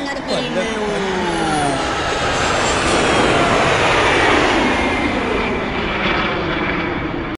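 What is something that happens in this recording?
A jet airliner roars loudly as it comes in low to land.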